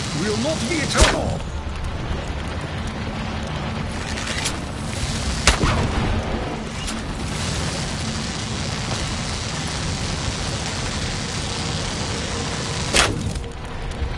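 A bow fires arrows with sharp twangs.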